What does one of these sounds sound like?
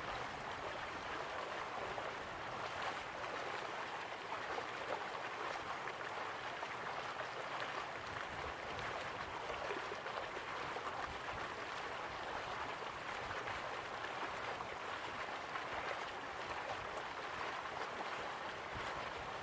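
Water rushes steadily down a waterfall.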